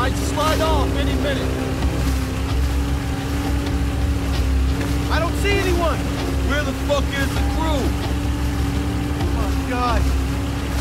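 Rough sea water splashes against a boat's hull.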